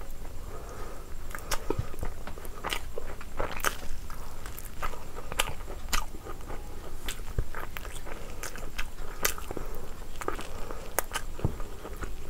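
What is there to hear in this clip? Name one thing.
A woman chews and smacks food loudly, close to a microphone.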